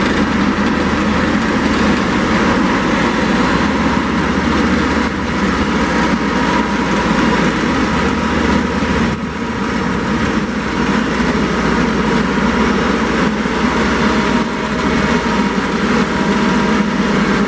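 A diesel heavy transporter engine drones as the vehicle creeps slowly forward.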